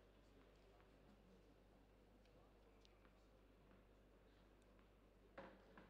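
A tennis ball bounces on a hard court floor a few times.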